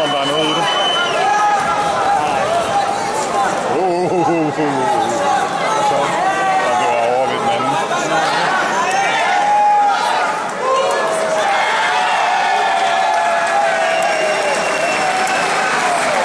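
A crowd of spectators chatters and calls out in a large hall.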